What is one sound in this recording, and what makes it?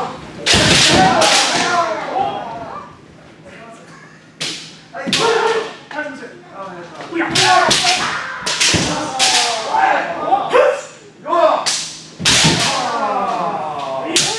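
Fencers shout loud, sharp cries that echo in a large hall.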